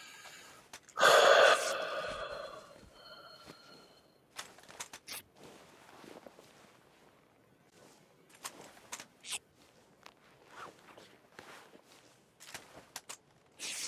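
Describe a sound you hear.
Cloth rustles softly as a bandage is wrapped, over and over.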